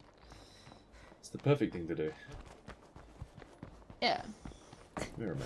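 Footsteps run quickly over dirt and rock.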